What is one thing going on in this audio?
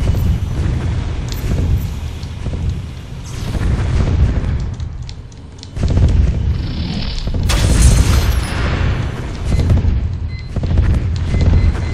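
A shell explodes with a loud bang.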